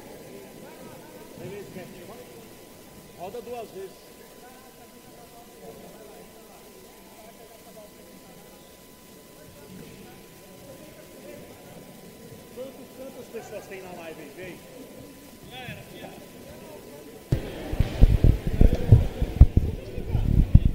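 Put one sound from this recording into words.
Spectators and players shout and call out in a large echoing hall.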